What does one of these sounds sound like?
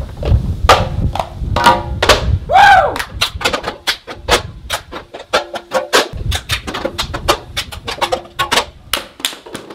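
Plastic cups clack on a glass table.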